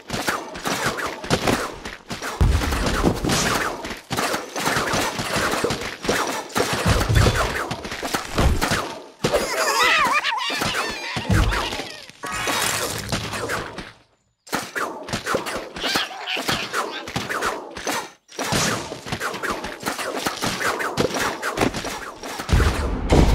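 Game sound effects of freezing and shattering ice play.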